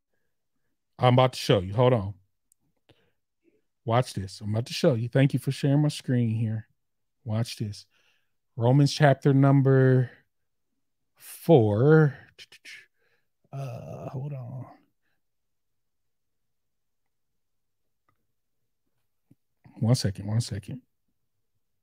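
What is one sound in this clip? A man speaks calmly into a microphone, reading out, with pauses.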